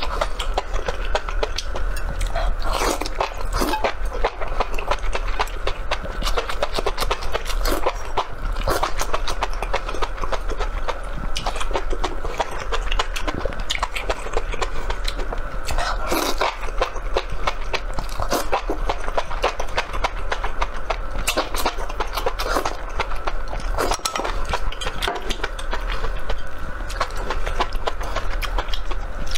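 A man chews food wetly, close to a microphone.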